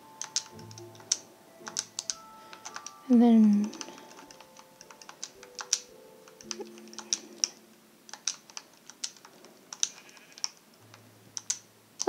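Menu clicks tick softly, one after another.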